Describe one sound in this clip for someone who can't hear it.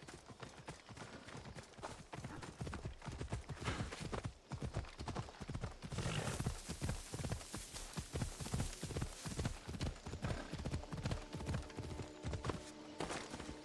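A horse's hooves thud rapidly at a gallop.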